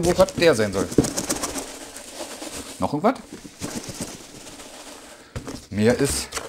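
Cardboard rustles as a box is opened.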